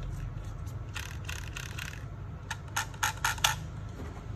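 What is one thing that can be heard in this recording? Plastic parts click and rattle.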